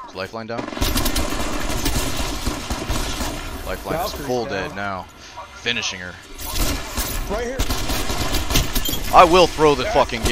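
Rapid gunshots crack repeatedly.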